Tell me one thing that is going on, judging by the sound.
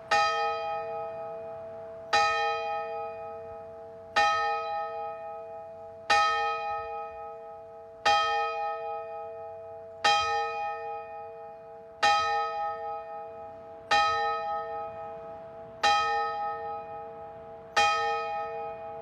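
A church bell tolls slowly and steadily, each stroke ringing on and fading.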